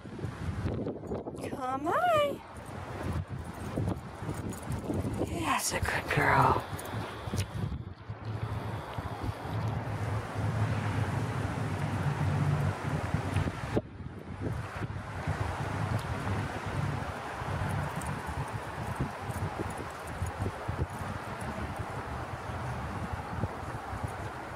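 A dog runs across dry grass.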